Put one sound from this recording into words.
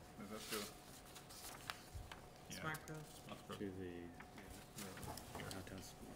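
Papers rustle.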